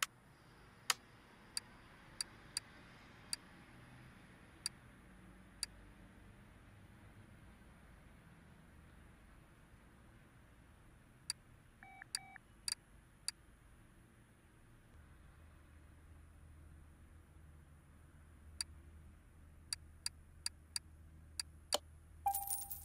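Short soft clicks tick one after another at an uneven pace.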